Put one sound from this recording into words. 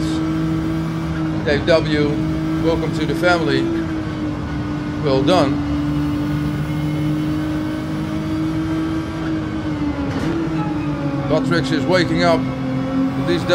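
A racing car engine drones steadily at high revs, dropping in pitch slightly as the car slows.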